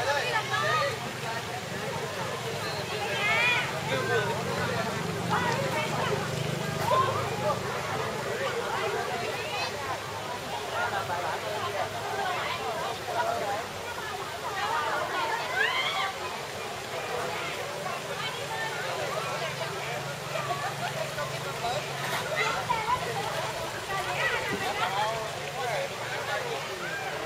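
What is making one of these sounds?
A crowd of adults and children chatter and call out nearby, outdoors.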